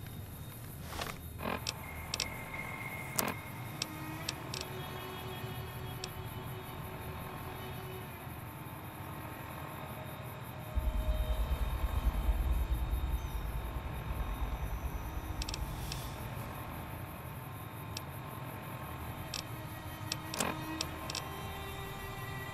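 Short electronic clicks and beeps sound now and then.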